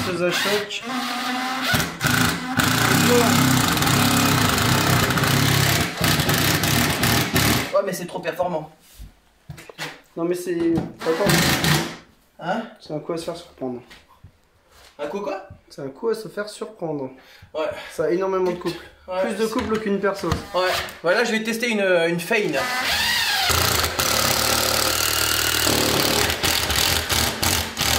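A cordless drill whirs as it drives screws into wood.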